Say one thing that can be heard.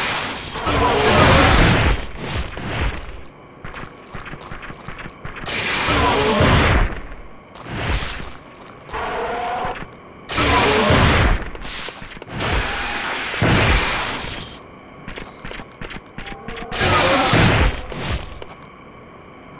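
A video game blaster fires in loud crackling bursts.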